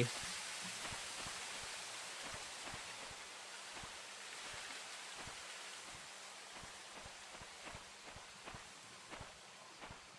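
Footsteps crunch steadily through grass and leaves.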